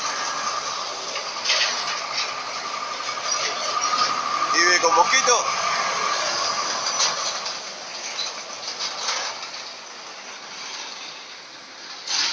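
A heavy truck rumbles past close by, its engine droning.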